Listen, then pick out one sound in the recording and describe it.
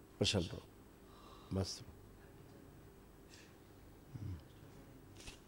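A man speaks briefly close by.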